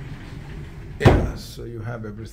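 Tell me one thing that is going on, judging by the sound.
A wooden cupboard door knocks as it swings open.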